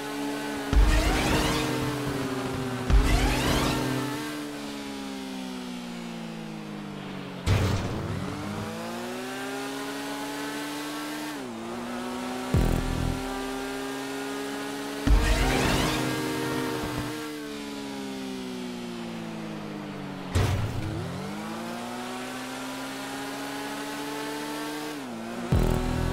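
A motorcycle engine drones steadily and shifts pitch as it speeds up and slows down.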